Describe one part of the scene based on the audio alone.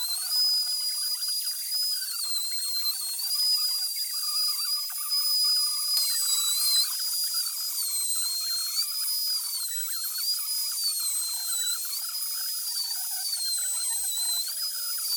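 An electric router whines loudly as it cuts into wood, its pitch dipping and rising.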